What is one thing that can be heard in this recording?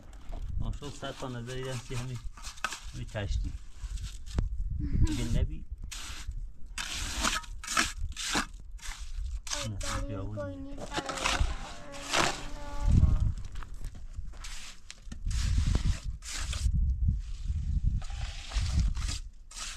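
A trowel spreads and taps wet mortar onto concrete blocks.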